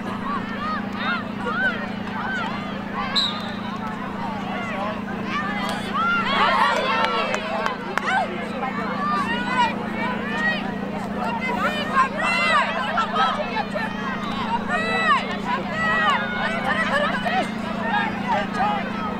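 Young women players shout and call out to each other outdoors.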